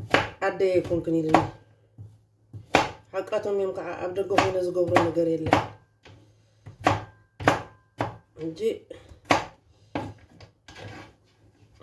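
A knife chops food on a wooden board with sharp knocks.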